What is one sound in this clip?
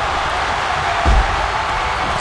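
A heavy body slams onto a wrestling mat with a thud.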